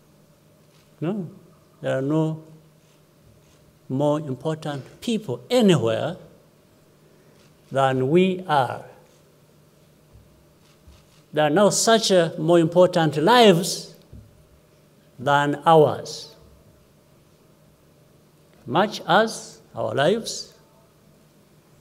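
A middle-aged man speaks slowly and calmly into a microphone, with long pauses, heard over a loudspeaker.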